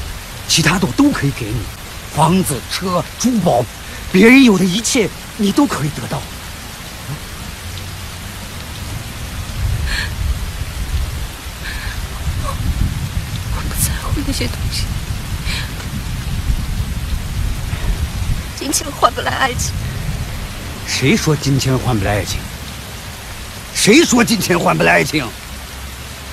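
A man speaks softly and intently up close.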